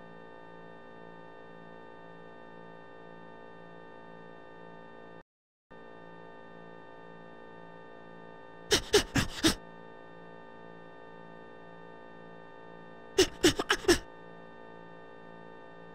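Calm, spooky game music plays steadily, breaking off for a moment.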